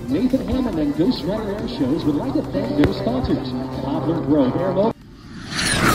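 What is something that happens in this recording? Fireworks bang and crackle overhead.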